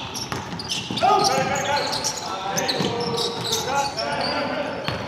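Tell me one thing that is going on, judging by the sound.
Young men call out to each other in a large echoing gym.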